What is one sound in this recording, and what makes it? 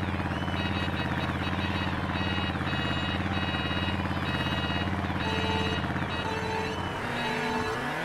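Kart engines idle with a steady low hum.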